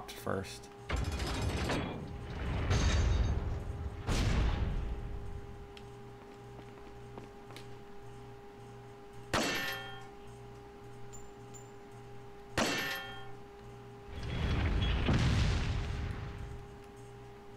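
A heavy drawbridge lowers with a deep, rumbling clank of chains.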